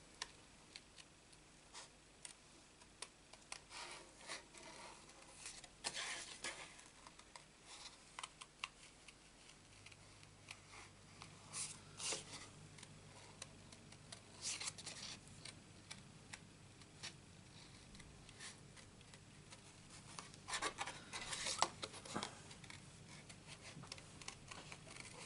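Small scissors snip through card with quick, crisp clicks.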